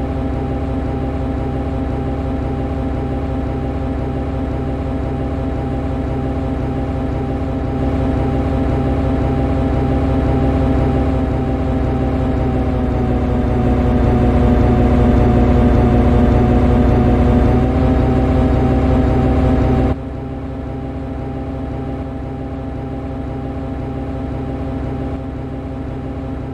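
A locomotive engine hums steadily as a train rolls along the tracks.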